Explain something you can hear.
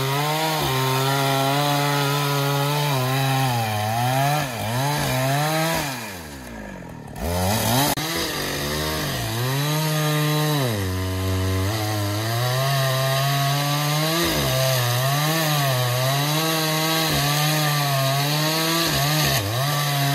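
A chainsaw engine roars loudly, its pitch rising and falling as it cuts into wood.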